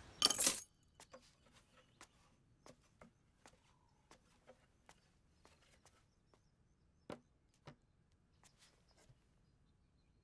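A large board knocks and rustles as it is carried indoors.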